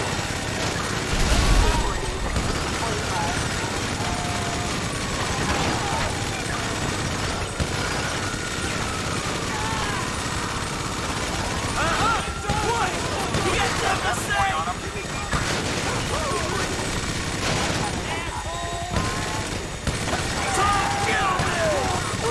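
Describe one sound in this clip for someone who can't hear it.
A minigun fires rapid bursts.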